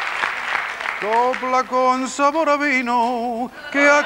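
An elderly man speaks into a microphone, heard through loudspeakers.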